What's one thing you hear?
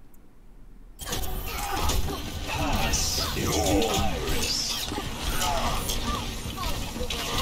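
Gunfire and explosions crackle loudly in a game battle.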